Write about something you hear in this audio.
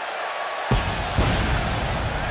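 Pyrotechnics go off with two loud booms.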